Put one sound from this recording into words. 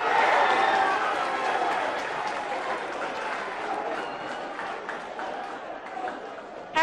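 A crowd cheers and shouts loudly, slowly fading.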